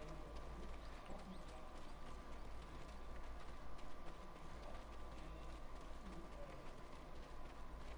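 Footsteps run quickly along a dirt path.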